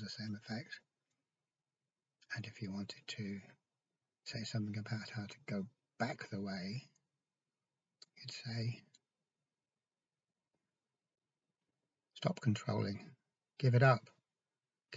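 An older man speaks calmly and close by, in short bursts with pauses.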